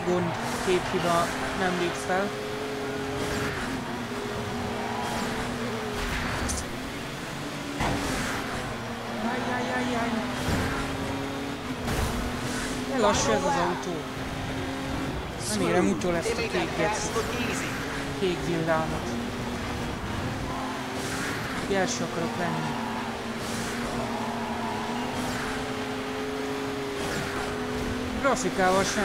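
Tyres screech as a truck slides through corners.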